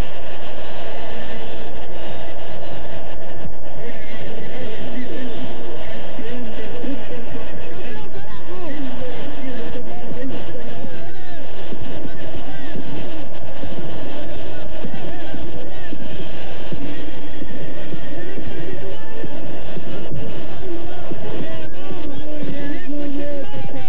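A large stadium crowd roars and chants in the open air.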